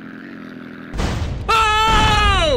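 A plane crashes with a loud burst.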